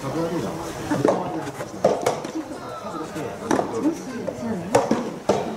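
A tennis ball is struck sharply by rackets, back and forth in a rally.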